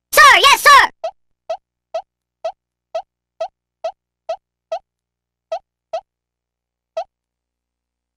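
Short electronic beeps tick down a countdown at a steady pace.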